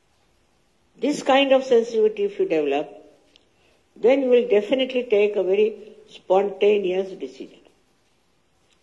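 An elderly woman speaks slowly and calmly into a microphone, heard through laptop speakers.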